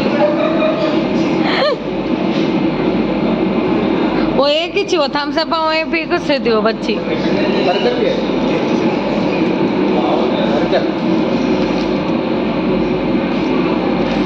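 Many people chatter in the background.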